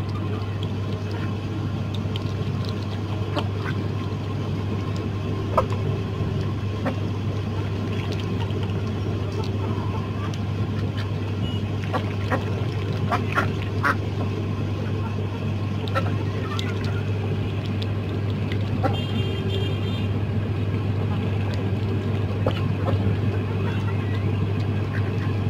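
Ducks and chickens peck at food.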